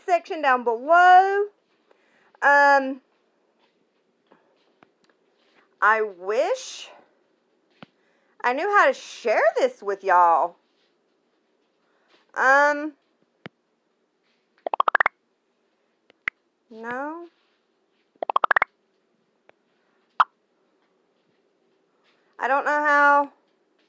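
A woman talks close to a phone microphone, with animation.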